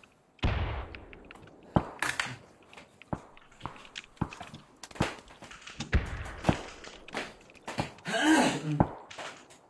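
Footsteps thud on a hard floor indoors.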